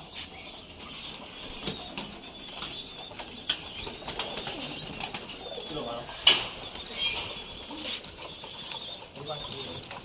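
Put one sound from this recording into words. Pigeons coo softly in cages.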